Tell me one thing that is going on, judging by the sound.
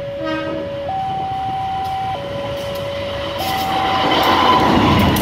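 A level crossing warning sounds in two alternating tones.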